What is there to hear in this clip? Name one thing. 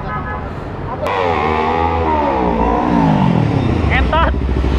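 A motorcycle engine revs and its pitch falls away.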